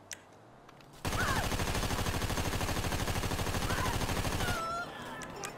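A gun fires a rapid automatic burst.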